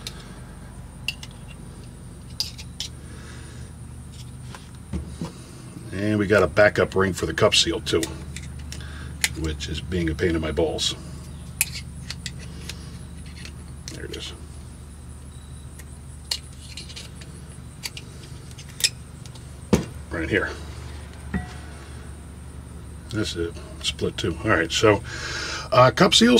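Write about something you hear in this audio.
Metal parts clink and scrape together as they are handled.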